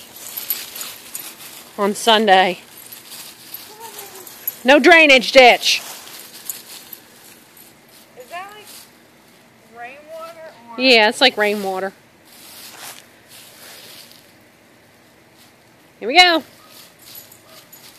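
Dry leaves rustle and crunch as a small dog runs through them.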